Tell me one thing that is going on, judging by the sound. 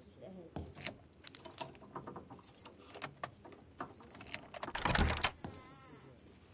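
A lock clicks and rattles as it is picked.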